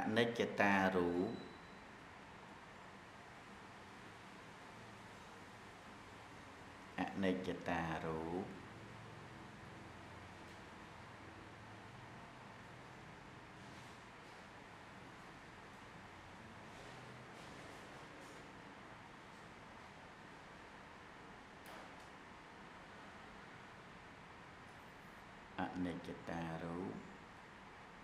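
A man chants in short bursts into a microphone, with long pauses between.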